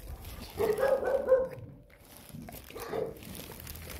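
A dog crunches on a biscuit close by.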